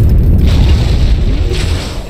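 An energy weapon fires with a sharp zap.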